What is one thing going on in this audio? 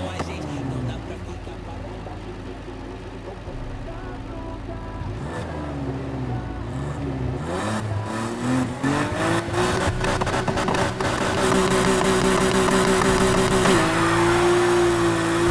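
A car exhaust pops and crackles.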